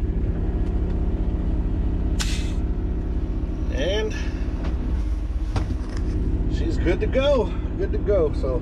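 A diesel truck engine idles with a low, steady rumble.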